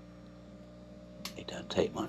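An oil can squirts with a soft click.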